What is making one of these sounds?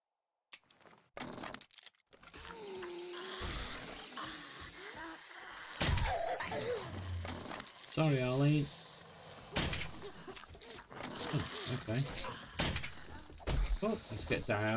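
A crossbow clicks and snaps as it is loaded and fired.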